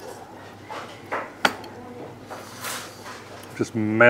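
A man slurps noodles noisily.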